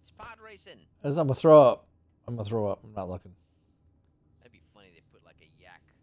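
A man laughs into a close microphone.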